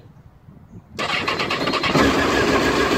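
An electric starter cranks an inline-four sportbike engine until it catches.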